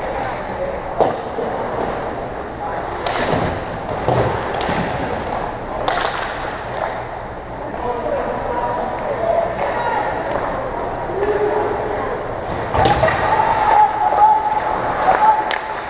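Sticks knock against pucks with sharp clacks.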